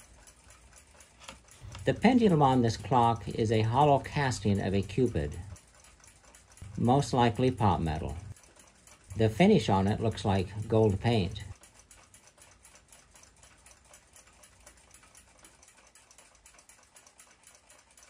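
Small metal clock parts clink softly.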